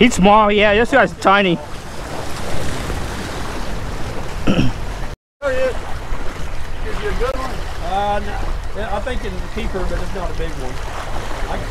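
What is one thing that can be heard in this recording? Waves splash against rocks.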